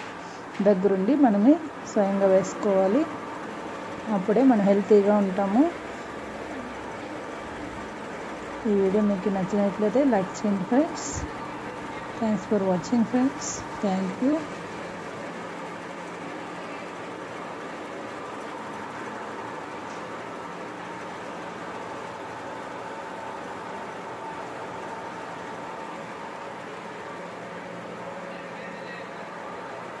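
A grain sieving machine hums and rattles steadily.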